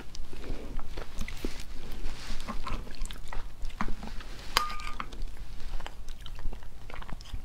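Sticky sauce squelches as fingers handle food.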